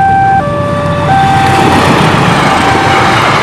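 A train rumbles and clatters past close by.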